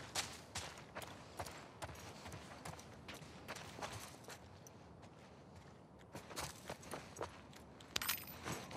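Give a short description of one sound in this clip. Footsteps thud on a creaky wooden floor indoors.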